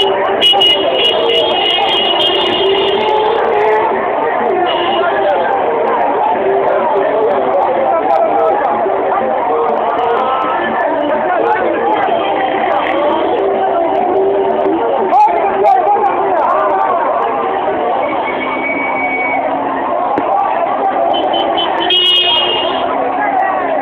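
Horns honk in short bursts.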